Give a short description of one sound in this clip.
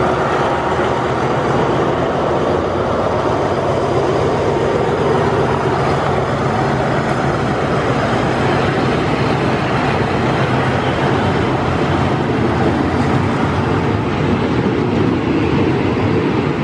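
Passenger carriage wheels clatter over rail joints.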